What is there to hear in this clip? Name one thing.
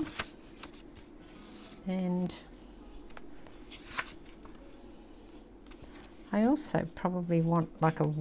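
Paper pages rustle and crinkle as they are turned and handled.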